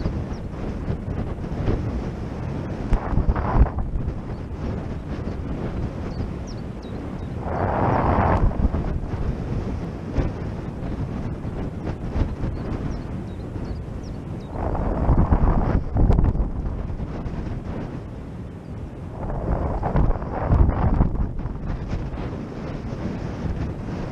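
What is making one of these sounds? Strong wind rushes and buffets loudly in gusts, outdoors.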